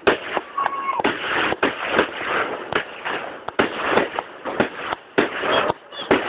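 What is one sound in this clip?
Fireworks crackle and fizz after each burst.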